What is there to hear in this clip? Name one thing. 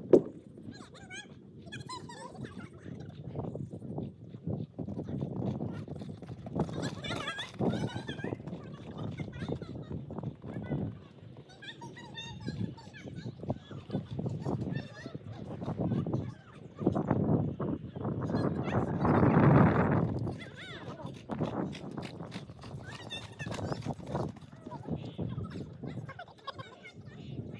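Horse hooves thud on soft ground as horses canter.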